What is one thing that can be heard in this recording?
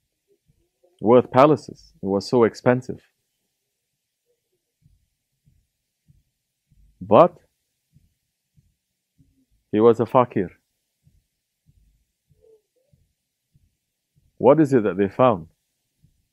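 A man speaks slowly and calmly into a close microphone, with long pauses.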